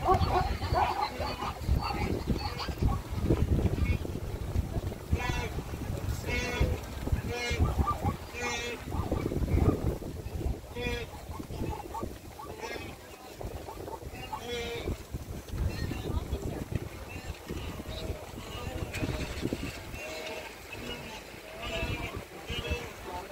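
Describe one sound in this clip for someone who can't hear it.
Water splashes as animals plunge through a river.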